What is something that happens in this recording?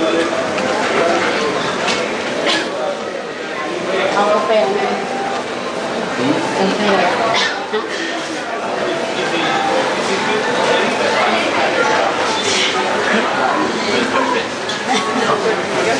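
Footsteps shuffle along a corridor.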